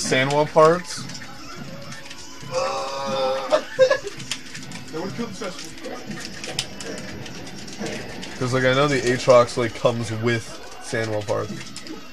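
Video game fighting sounds hit and crack in quick bursts.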